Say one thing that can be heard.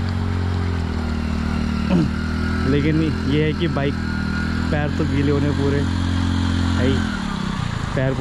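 A motorcycle engine idles nearby.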